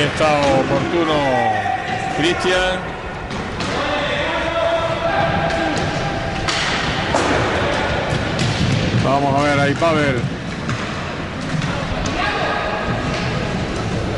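Roller skates roll and scrape across a wooden floor.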